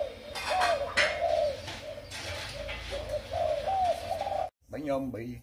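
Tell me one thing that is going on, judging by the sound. A dove coos softly.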